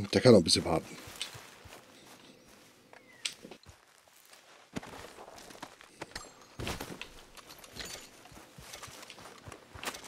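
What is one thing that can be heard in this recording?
Footsteps swish through grass.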